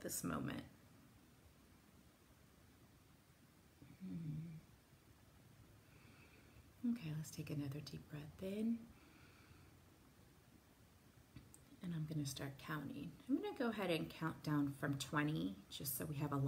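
A woman speaks calmly and softly, close by.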